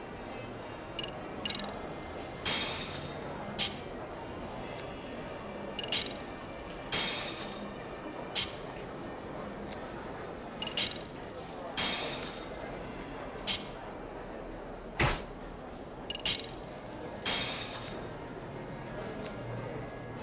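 Poker chips clatter as bets go in, again and again.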